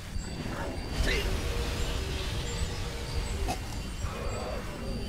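A magic spell crackles and roars.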